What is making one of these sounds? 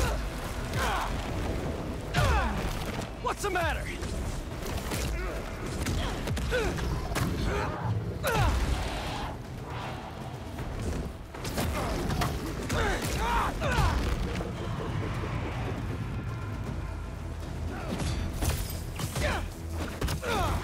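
Swift whooshes sweep through the air during a fight.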